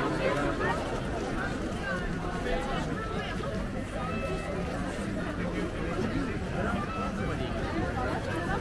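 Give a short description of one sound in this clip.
A large crowd of men and women chatters all around outdoors.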